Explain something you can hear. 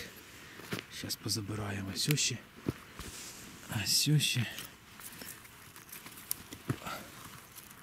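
Footsteps crunch on dry forest ground.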